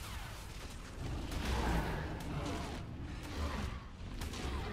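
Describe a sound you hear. Weapon blows thud against a creature.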